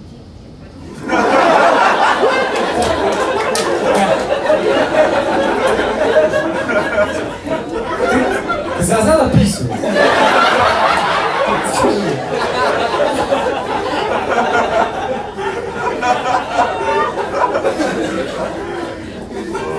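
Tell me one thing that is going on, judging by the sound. An audience laughs loudly.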